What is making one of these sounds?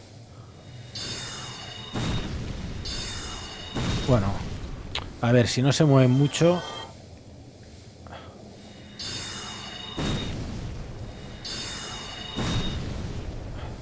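A magic spell fires with a bright, shimmering whoosh.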